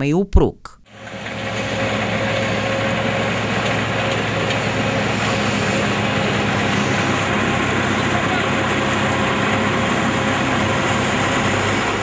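A heavy machine engine roars steadily.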